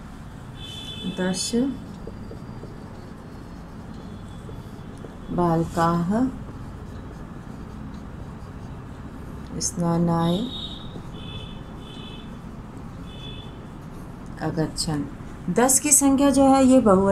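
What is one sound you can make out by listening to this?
A woman speaks calmly in short phrases, close by.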